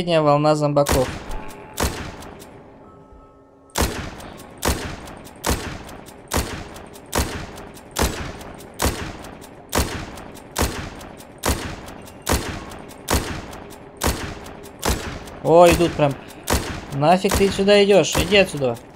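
Rifle shots fire in a steady, quick rhythm, each with a short echo.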